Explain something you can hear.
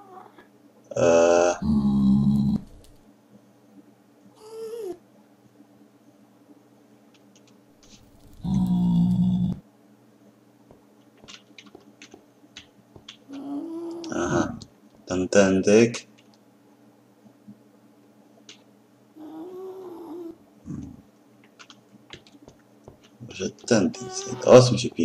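A creature grunts and snorts nearby.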